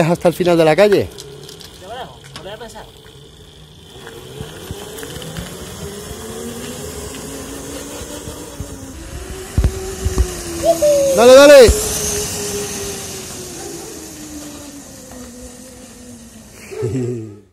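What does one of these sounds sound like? An electric motor whines steadily, rising and falling in pitch as a small kart drives around.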